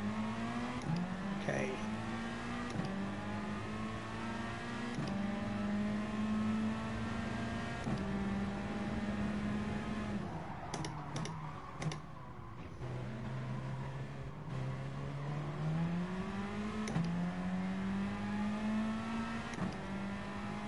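A racing car engine roars and revs up through the gears, dropping in pitch at each gear change.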